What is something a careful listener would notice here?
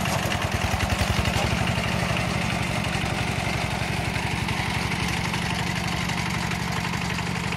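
The single-cylinder diesel engine of a two-wheel tractor chugs close by.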